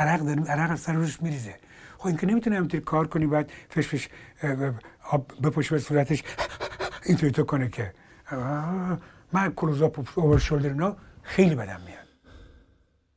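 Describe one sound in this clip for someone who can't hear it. An elderly man talks with animation, close to a microphone.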